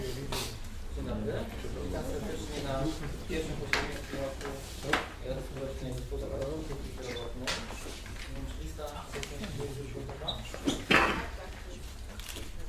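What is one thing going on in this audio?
A man speaks calmly to a room, slightly distant with some echo.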